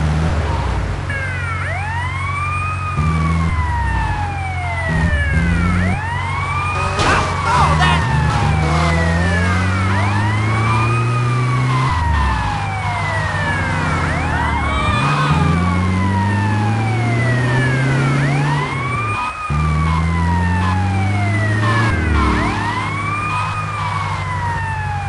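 A van's engine drones and shifts pitch as it drives.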